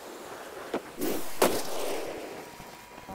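A loud crash booms and fades.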